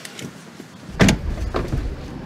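A car door slams shut nearby.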